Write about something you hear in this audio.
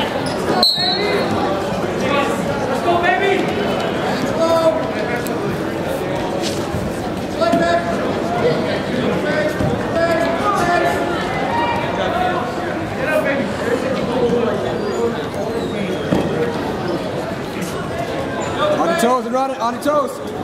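A crowd of spectators shouts and cheers loudly in a large echoing gym.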